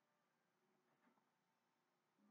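A chiming sound effect rings out from a television speaker.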